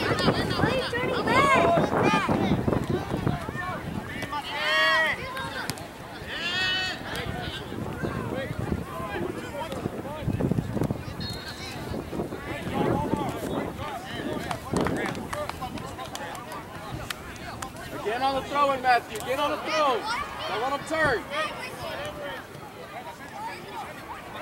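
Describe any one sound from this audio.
Adult spectators shout and cheer outdoors.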